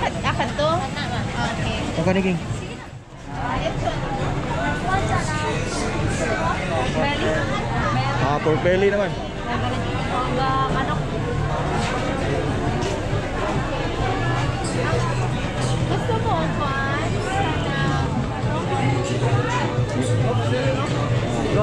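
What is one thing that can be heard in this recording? A crowd chatters all around in a busy open-air space.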